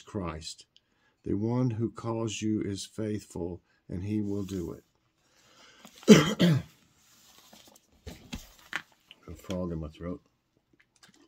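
An older man talks calmly and close by, in short phrases.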